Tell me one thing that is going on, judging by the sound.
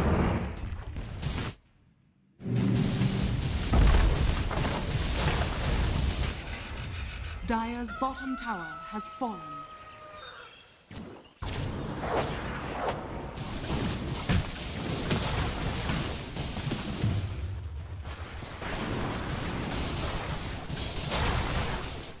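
Spells and weapons clash with bursts and blasts in a game fight.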